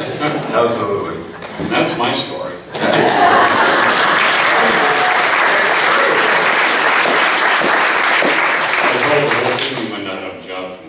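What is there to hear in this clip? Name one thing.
A man speaks to an audience through a microphone in a large echoing room.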